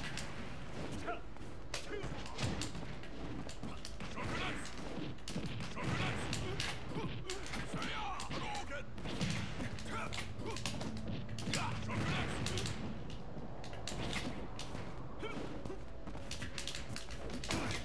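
Punches, kicks and blasts thud and crackle in a fighting game.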